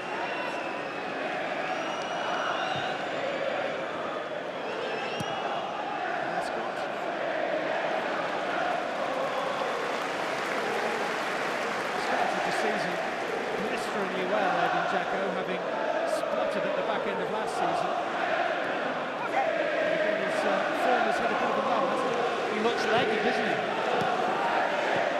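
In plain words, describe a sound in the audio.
A large stadium crowd sings and chants in a steady roar.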